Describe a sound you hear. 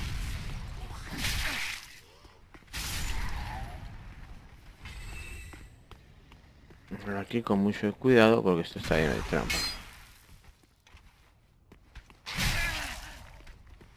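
Armored footsteps clank on stone.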